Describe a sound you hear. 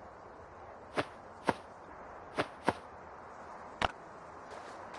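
Short clicks sound as items are moved.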